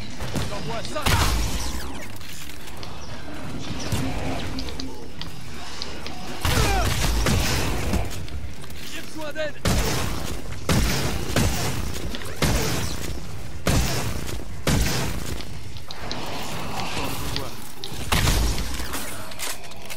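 Heavy gunfire booms in short, loud bursts.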